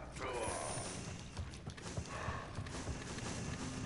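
Bright magical chimes sparkle.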